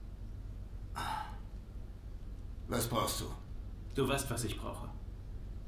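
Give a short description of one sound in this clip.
A young man speaks tensely nearby.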